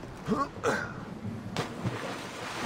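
Water splashes as a figure dives into the sea.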